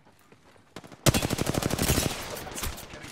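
Rapid gunfire rattles in a fast burst.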